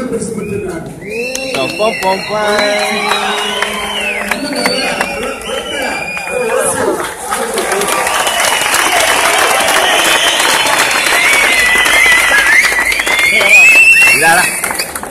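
A crowd of young men shouts and cheers.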